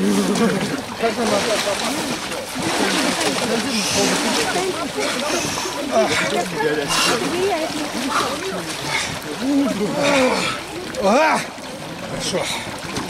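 Several men talk and shout excitedly nearby.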